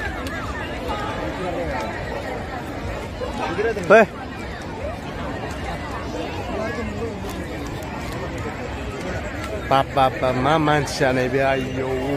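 A large crowd chatters all around outdoors.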